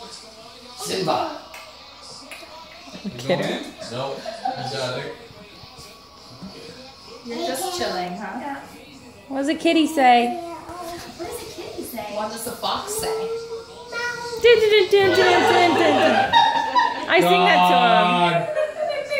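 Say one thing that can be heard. Young women talk and laugh nearby in a room.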